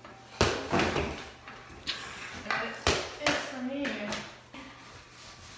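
Cardboard boxes thump and scrape as a young boy moves them.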